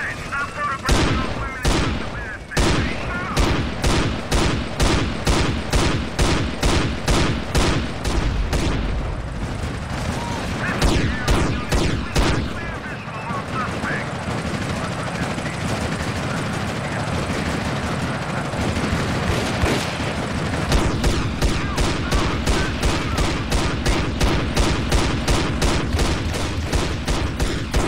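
Shotgun blasts fire again and again in quick succession.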